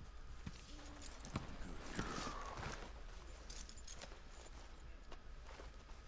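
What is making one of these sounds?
A horse's hooves thud slowly on soft ground.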